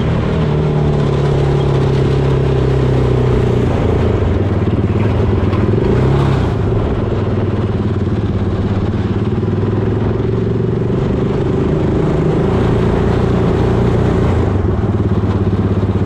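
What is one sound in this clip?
An off-road buggy's engine roars loudly up close, rising and falling with the throttle.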